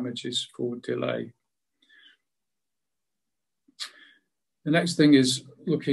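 A middle-aged man speaks calmly into a microphone over an online call, pausing between phrases.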